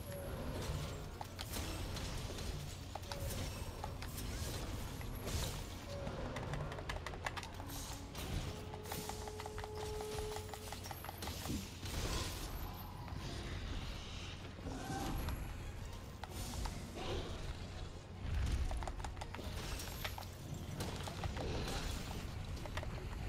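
Sword blows strike a huge beast's hide with heavy thuds.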